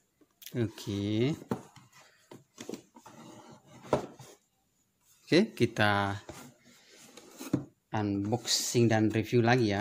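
A cardboard box rustles and scrapes as it is handled.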